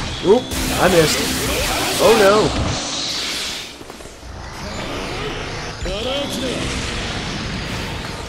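Fighting game sound effects whoosh and blast.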